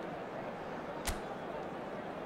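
A short menu click sounds once.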